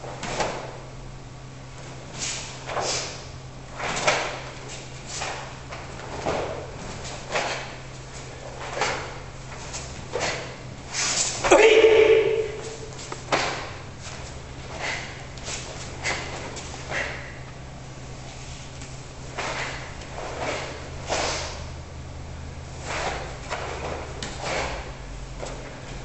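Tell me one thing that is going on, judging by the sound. Bare feet shuffle and thump on a mat.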